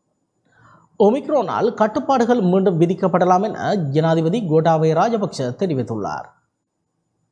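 A man reads out the news calmly through a microphone.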